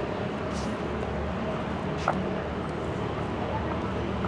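High heels click on stone paving.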